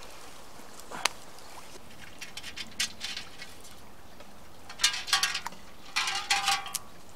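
A person's boots splash and squelch in shallow water.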